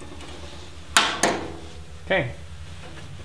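Pliers clank against sheet metal.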